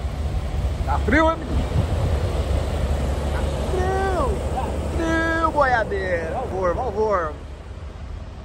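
A diesel truck engine idles nearby with a low rumble.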